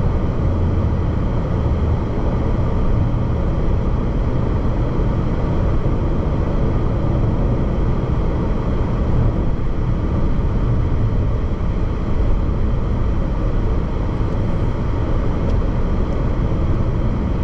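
Road noise rumbles steadily from inside a moving car on a highway.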